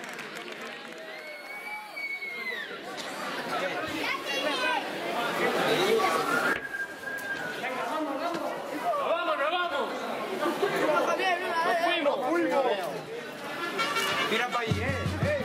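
A crowd of young men and women talk and call out all at once, close by.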